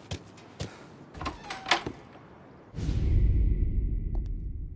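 A heavy door creaks open.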